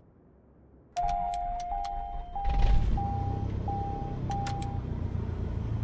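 Cockpit electronics beep in a quick series of short tones.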